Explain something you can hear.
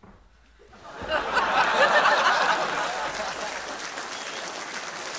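A large audience bursts into loud laughter.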